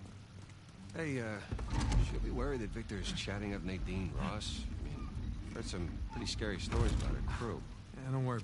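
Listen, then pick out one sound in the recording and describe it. A young man talks casually with animation, close by.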